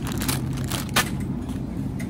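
Plastic wrapping on a bunch of flowers crinkles.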